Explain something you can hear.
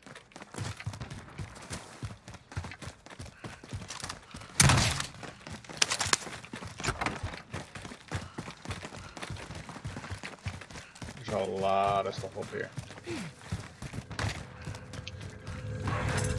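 Footsteps patter quickly on hard pavement.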